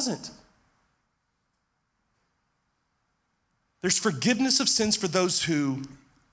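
A man speaks with emphasis into a microphone.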